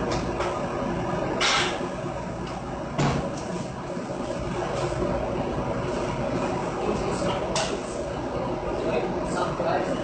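Flames roar on a gas burner.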